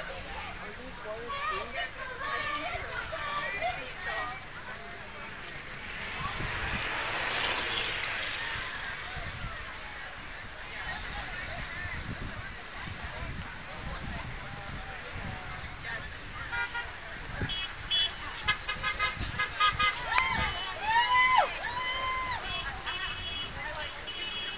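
A crowd of protesters cheers and shouts outdoors.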